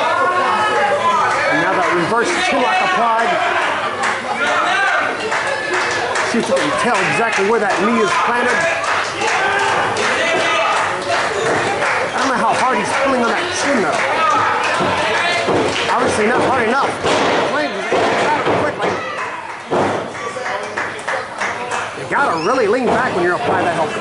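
A crowd of spectators shouts and cheers loudly in an echoing hall.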